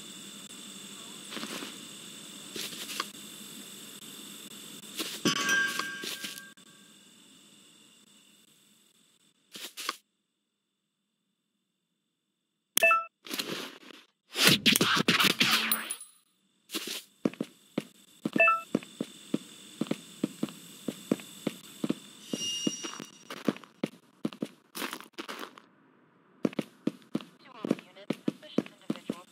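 Footsteps crunch through grass and over pavement at a steady walking pace.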